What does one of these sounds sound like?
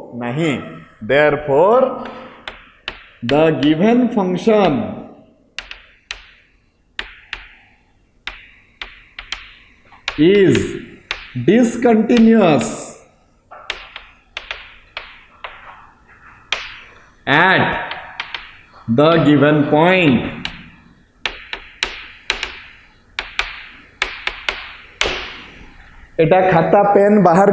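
A man speaks in an animated, teaching tone, close by in a room with some echo.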